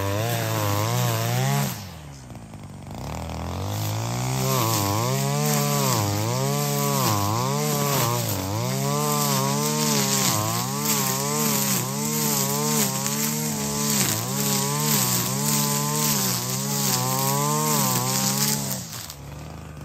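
A brush cutter engine whines loudly, rising and falling in pitch as it cuts grass.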